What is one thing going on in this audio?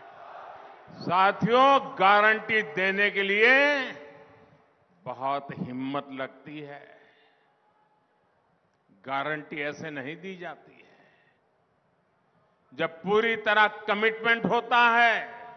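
An elderly man gives a speech forcefully through a loudspeaker system, in bursts with pauses.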